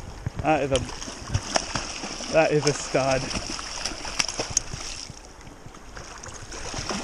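A shallow stream rushes and burbles steadily.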